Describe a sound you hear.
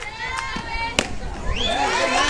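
A bat cracks against a softball.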